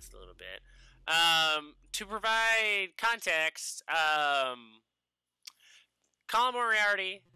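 A man speaks loudly and with animation through a microphone.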